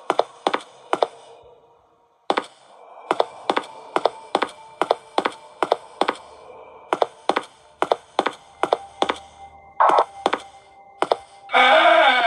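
Footsteps tap in quick, even succession on a hard floor.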